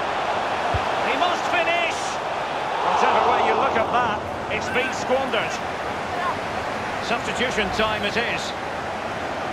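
A stadium crowd cheers loudly, then quiets down.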